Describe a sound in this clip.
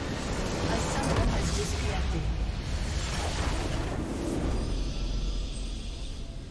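A loud magical blast roars and crackles.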